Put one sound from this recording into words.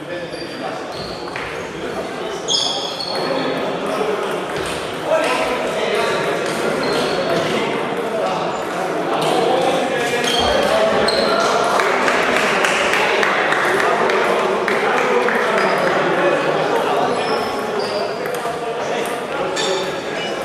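Men talk with each other in the background.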